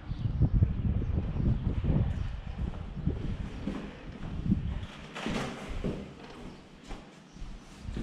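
Footsteps tread on a gritty concrete floor.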